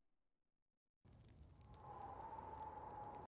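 Brighter game music starts up after a short silence.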